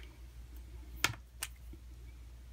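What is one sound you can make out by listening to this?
A pen cap clicks shut and open.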